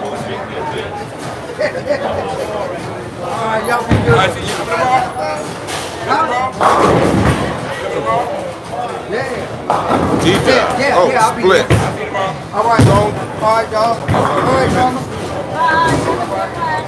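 Men talk loudly nearby in a large echoing hall.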